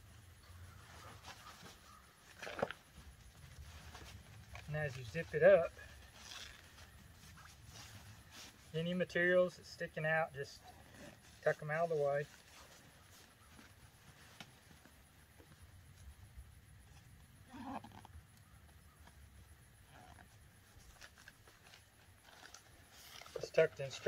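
Fabric rustles as a folded bag is handled.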